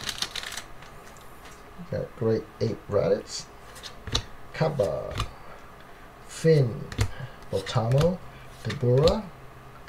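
Trading cards slide and flick against each other.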